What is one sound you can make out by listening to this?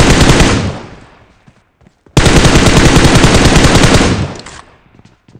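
An automatic rifle fires rapid bursts that ring out and fade.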